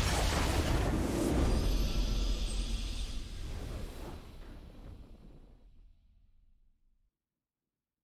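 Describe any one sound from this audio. A triumphant game fanfare swells and then fades away.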